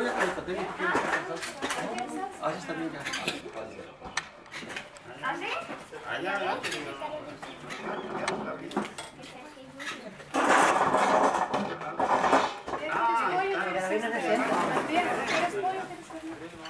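Several adult women and men talk and chatter at once around a table outdoors.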